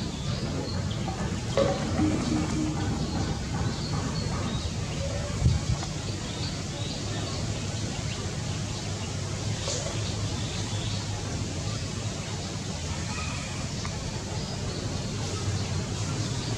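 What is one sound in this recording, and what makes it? A monkey softly rustles through another monkey's fur while grooming.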